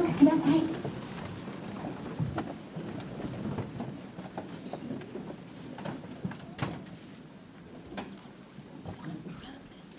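A seated crowd murmurs softly in a large hall.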